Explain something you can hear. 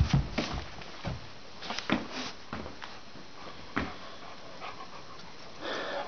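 A dog's paws thump as it climbs carpeted stairs.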